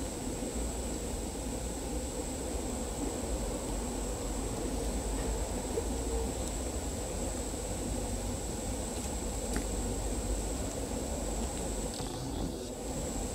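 Bees buzz among the blossoms of a tree.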